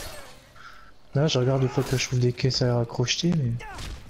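A blade strikes flesh with heavy, wet thuds.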